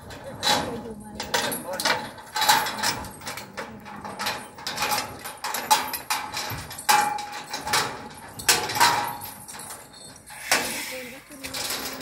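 Metal clanks and knocks sharply on a truck's cage.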